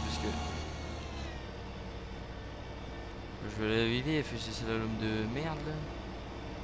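A combine harvester engine hums steadily.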